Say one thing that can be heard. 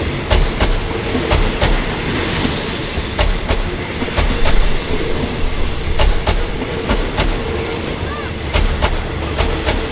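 A train rumbles slowly past with wheels clacking rhythmically over rail joints.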